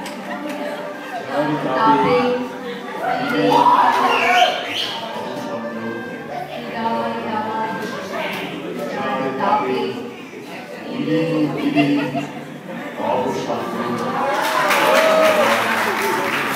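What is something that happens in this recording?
Young women speak with animation in a hall with some echo.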